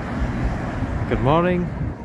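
Cars drive past on a busy street.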